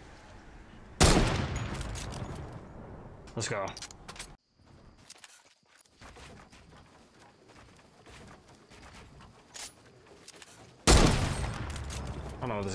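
A sniper rifle fires with loud, echoing shots.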